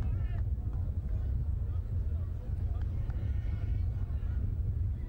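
Players shout across an outdoor field.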